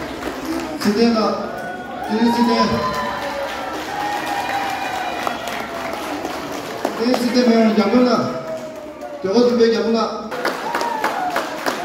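A man speaks through a microphone and loudspeaker in an echoing hall.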